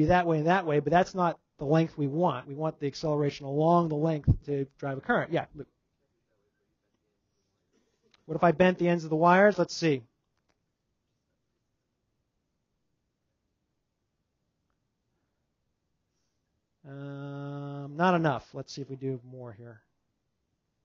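A man speaks calmly into a headset microphone, in short bursts with pauses.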